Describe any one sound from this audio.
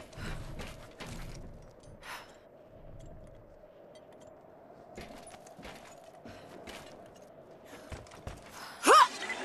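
Footsteps crunch on snowy metal walkways.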